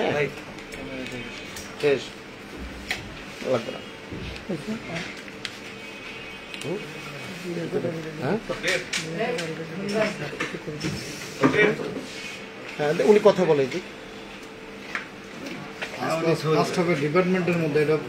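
A young man talks on a phone nearby in a calm voice.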